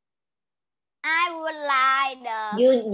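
A young girl speaks over an online call.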